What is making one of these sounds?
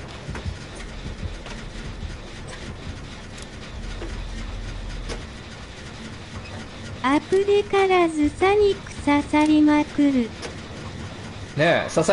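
A generator clanks and rattles as it is worked on.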